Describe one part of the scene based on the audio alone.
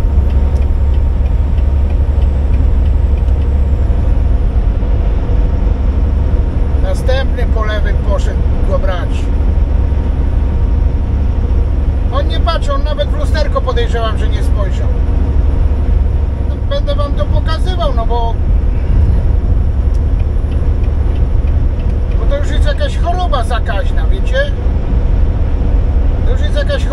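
A truck engine drones steadily, heard from inside.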